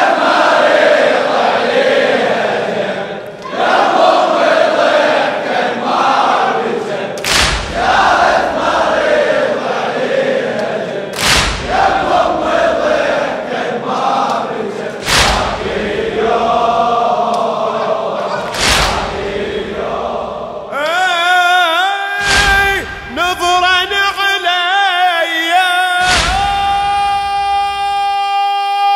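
A man chants loudly and with emotion through a microphone.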